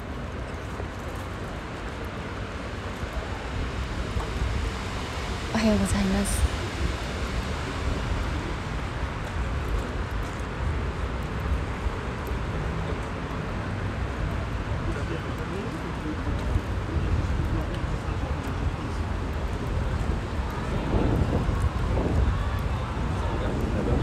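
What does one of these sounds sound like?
River water laps gently against a stone quay.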